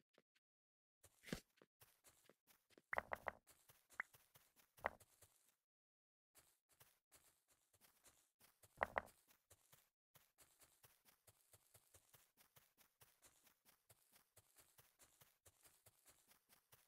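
Footsteps patter quickly on sand and stone.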